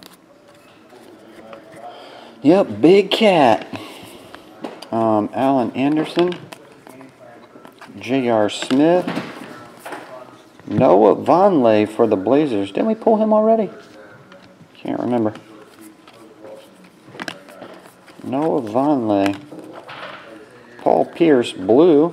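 Trading cards rustle and flick as hands sort through them.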